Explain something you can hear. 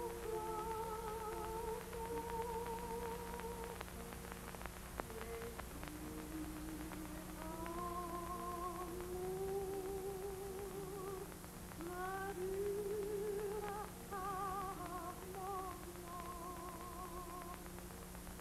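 A man sings in long, wavering notes, heard through an old, hissy film recording.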